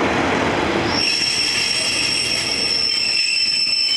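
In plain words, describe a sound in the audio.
A train's motor whines as it pulls away.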